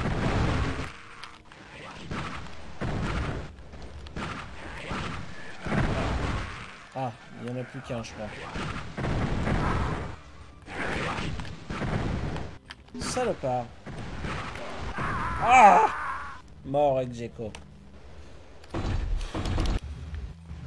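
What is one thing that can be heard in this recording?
Game weapons fire with sharp blasts.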